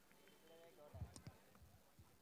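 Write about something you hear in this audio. A bat strikes a cricket ball with a sharp knock.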